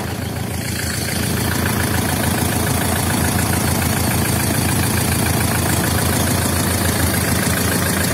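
A diesel engine idles with a steady, rapid clatter close by.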